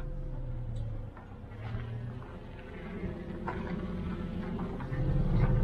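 A vehicle engine rumbles as it drives by on a dirt road.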